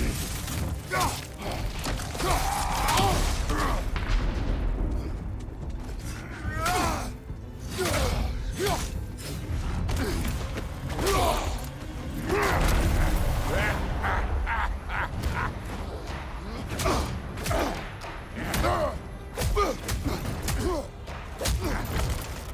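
Heavy punches and blows land with dull thuds.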